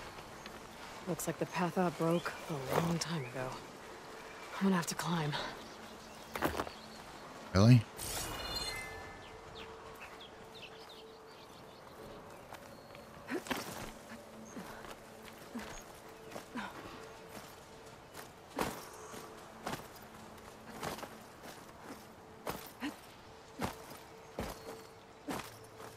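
Footsteps scrape over rock.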